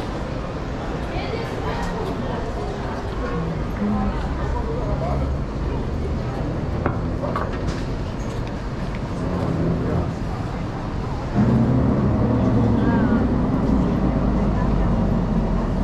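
Footsteps walk along a paved sidewalk.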